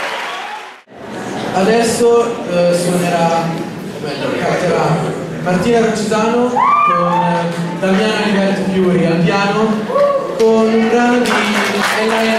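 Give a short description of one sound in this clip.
A young man speaks, reading out through a microphone.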